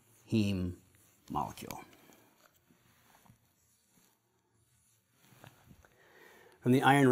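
A man speaks calmly, as if lecturing, close to a microphone.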